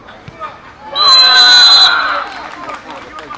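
Young men shout and cheer loudly nearby.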